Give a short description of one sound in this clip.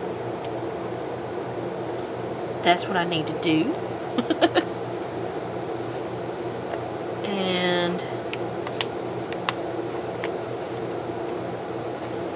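Paper sheets rustle and crinkle as they are handled.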